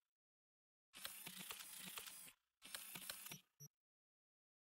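Electronic menu sounds beep and chirp.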